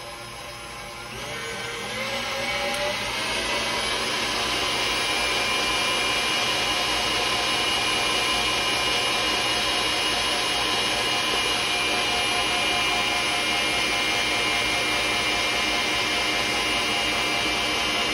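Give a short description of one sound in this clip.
An electric stand mixer whirs, speeding up and then running steadily.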